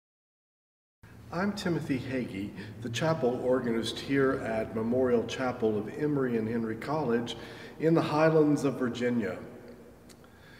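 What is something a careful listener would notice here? A middle-aged man speaks calmly to a nearby microphone in a room with a slight echo.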